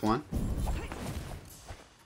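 A sword swings and strikes with a sharp clash.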